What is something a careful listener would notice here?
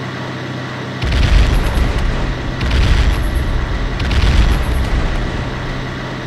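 Bombs explode with deep booming blasts.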